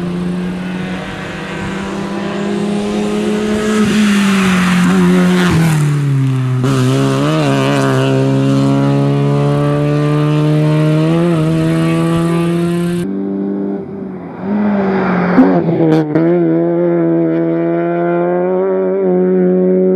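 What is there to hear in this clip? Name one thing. A rally car engine screams at high revs.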